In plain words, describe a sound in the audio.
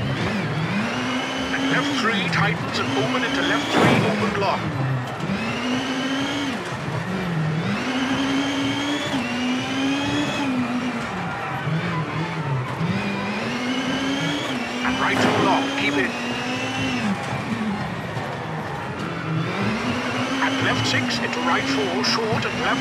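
A rally car engine revs hard, rising and dropping in pitch with each gear change.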